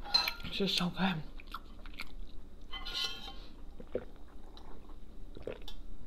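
A young woman sips a drink through a straw.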